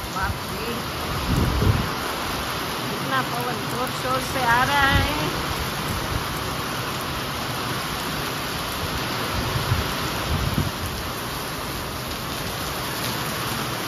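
Wind gusts rush through trees.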